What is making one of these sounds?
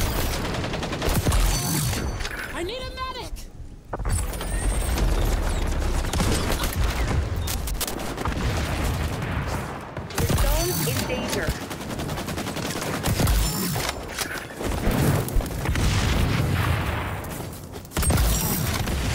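A sniper rifle fires in a video game.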